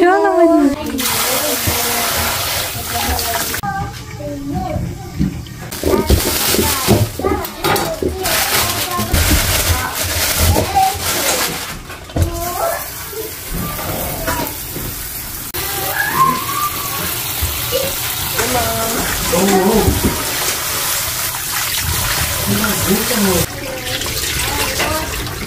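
Water runs from a tap and splashes into a metal bowl.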